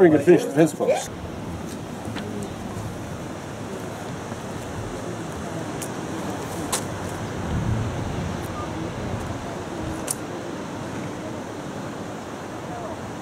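Ocean waves wash steadily against rocks below.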